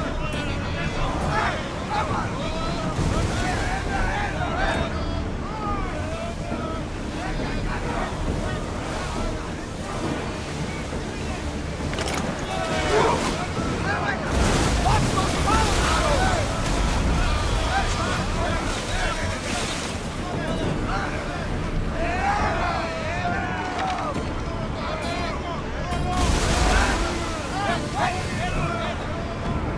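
Waves rush and splash against a sailing ship.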